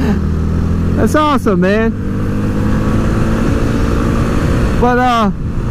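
A motorcycle engine drones steadily while riding.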